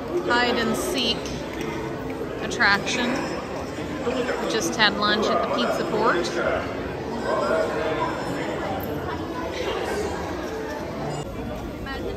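A crowd of people chatters all around.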